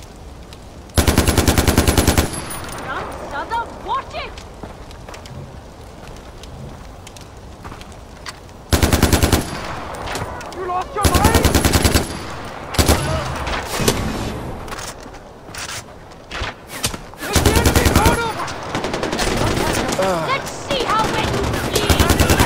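A rifle fires rapid bursts of automatic gunfire.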